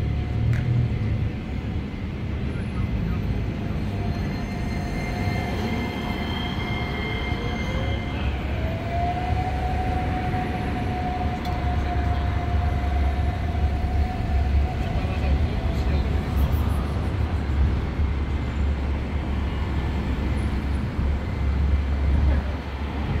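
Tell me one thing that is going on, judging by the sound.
Traffic rolls by on a city street.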